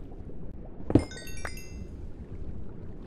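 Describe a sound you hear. A small item pops with a bright rising chime.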